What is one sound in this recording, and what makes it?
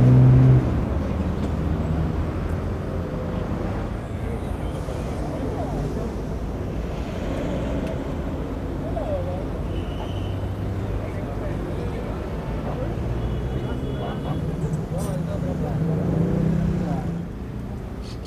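Men talk among themselves outdoors.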